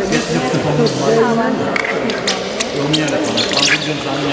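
A swimmer splashes close by in the water.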